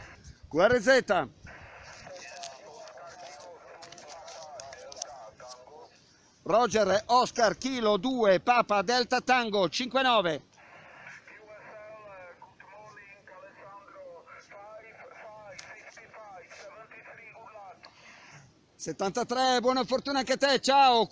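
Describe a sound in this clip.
A man speaks into a radio microphone at close range.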